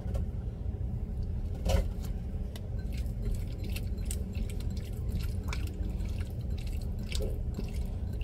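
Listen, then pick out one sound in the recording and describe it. Hands squish and mix wet meat in a glass bowl.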